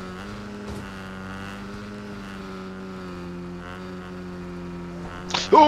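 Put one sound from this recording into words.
A motorbike engine hums steadily at an even pitch.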